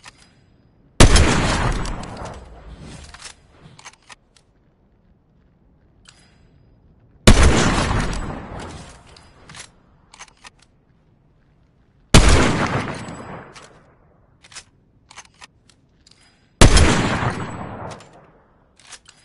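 A sniper rifle fires loud single shots that echo and fade.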